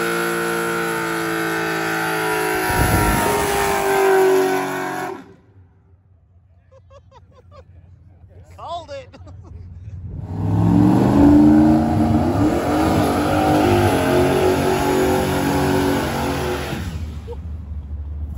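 Tyres squeal as they spin on the road.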